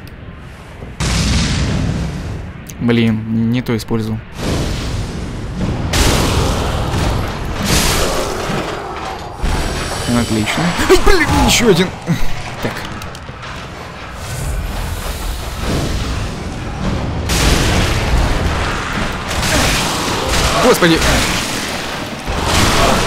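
Fire roars and bursts in a sudden blast.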